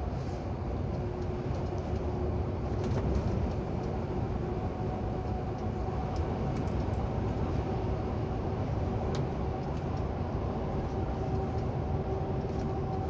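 A vehicle's engine drones steadily while driving on a highway.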